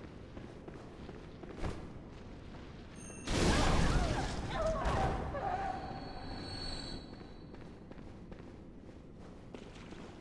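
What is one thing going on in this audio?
Footsteps clatter on a stone floor.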